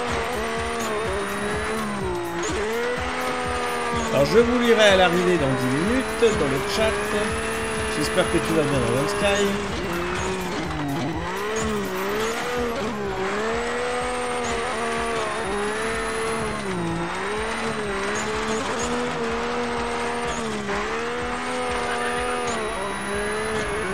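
A car engine revs up and down repeatedly as it races along.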